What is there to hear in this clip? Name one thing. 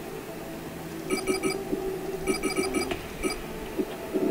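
Electronic menu beeps chime as items are selected.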